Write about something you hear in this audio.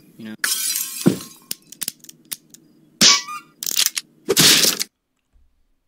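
A gun fires with a sharp bang.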